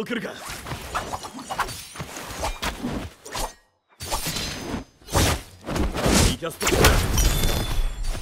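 Blades swish and clang in a fight.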